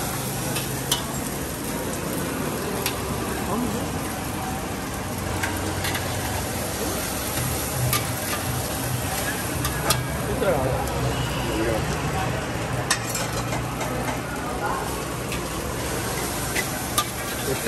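A metal spatula scrapes and clinks against a frying pan.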